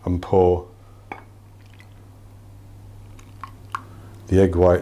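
A glass jug clinks against a bowl.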